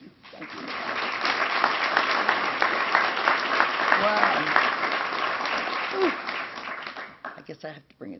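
A large audience claps loudly and steadily, then the clapping fades away.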